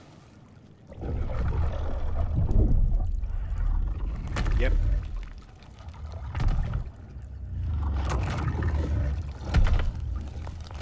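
A large creature growls with a deep rumbling roar.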